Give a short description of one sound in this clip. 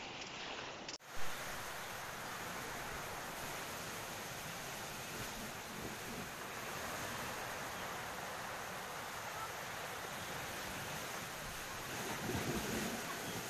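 Surf churns and washes over rocks.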